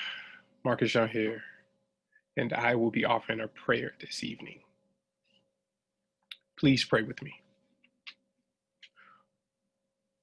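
A man speaks calmly and close to the microphone, in short phrases with pauses.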